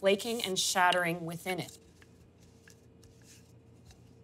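A rolling pin rolls softly over dough.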